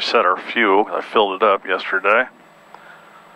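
A man speaks calmly and closely through a headset microphone.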